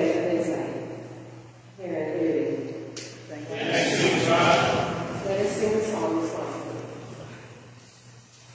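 A woman sings slowly in a large echoing hall.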